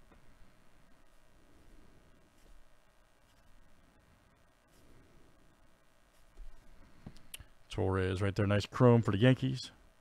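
Trading cards slide and rustle softly in a hand.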